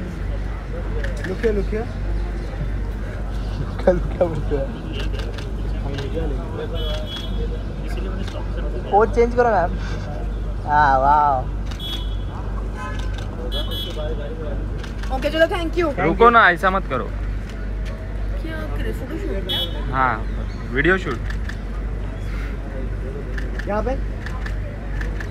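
Photographers and onlookers call out and shout outdoors.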